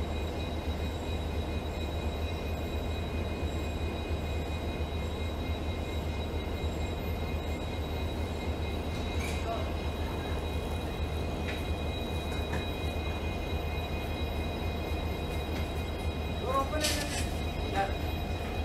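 A diesel locomotive engine rumbles steadily as a train approaches.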